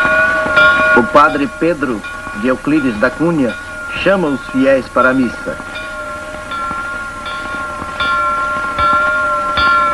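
A church bell rings out overhead.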